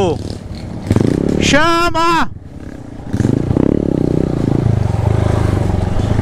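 A dirt bike engine runs as the motorcycle rides along a dirt trail.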